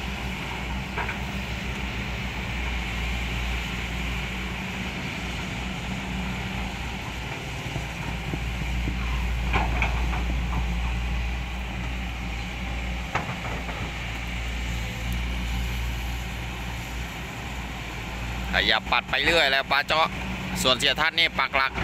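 An excavator bucket digs and scoops wet mud.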